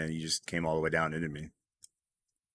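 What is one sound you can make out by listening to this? A man speaks with animation through a headset microphone.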